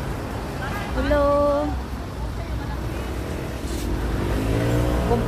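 A woman speaks nearby in a lively voice.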